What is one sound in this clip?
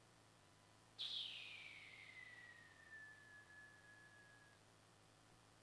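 A short chime rings out and slowly slides down in pitch as it fades.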